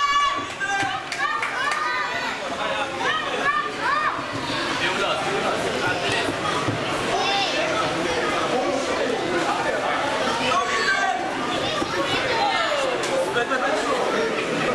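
A crowd cheers and shouts loudly around the ring.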